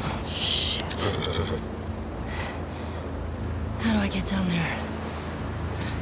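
A young woman mutters quietly to herself.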